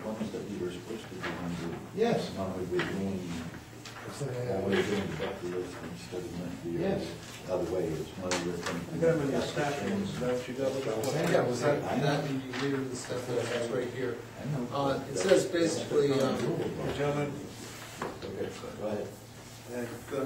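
Several men talk calmly nearby.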